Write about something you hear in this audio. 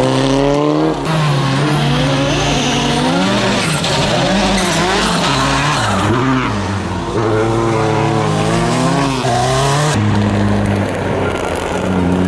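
A rally car engine roars and revs hard.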